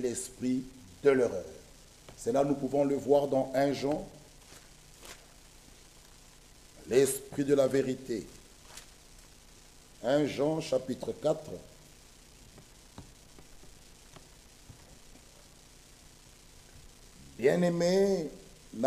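A man speaks slowly and with emphasis into a microphone, pausing often.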